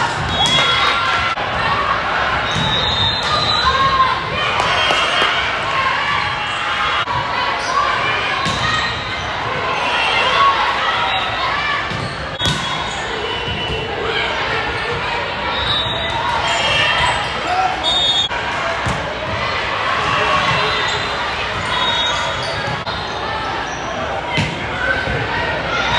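Young women players call out and shout to each other.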